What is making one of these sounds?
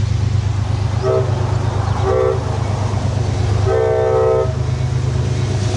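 A train horn blows several times in the distance.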